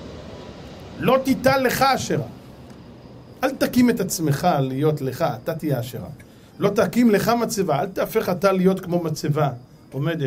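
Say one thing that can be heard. A middle-aged man speaks with feeling into a microphone.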